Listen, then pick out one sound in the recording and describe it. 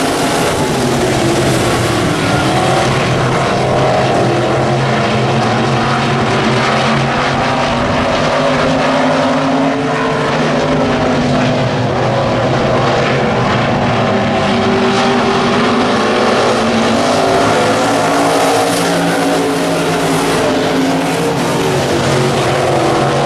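Race car engines roar loudly as the cars speed around a dirt track.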